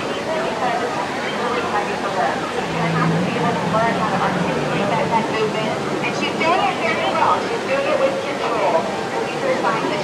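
Children and adults call out and squeal with excitement nearby.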